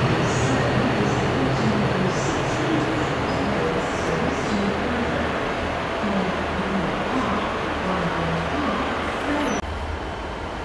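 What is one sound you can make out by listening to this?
Freight wagons rumble and clatter along the rails, moving away.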